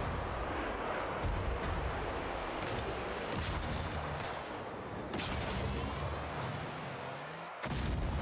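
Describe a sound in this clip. A game car engine roars with a rushing boost.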